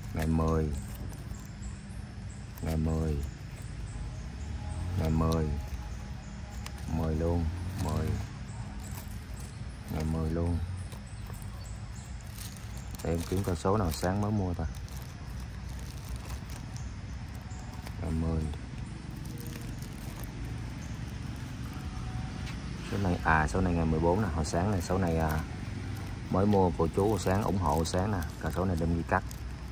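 Plastic wrappers crinkle as they are handled.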